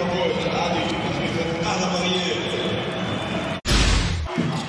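A crowd cheers loudly in an indoor arena.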